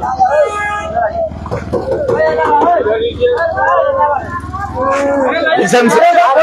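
A crowd of men and women shouts and sings loudly close by, outdoors.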